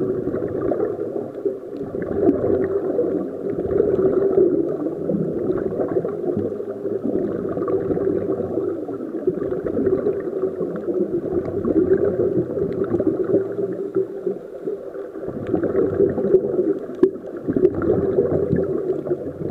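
Underwater, scuba regulators release bursts of exhaled air bubbles.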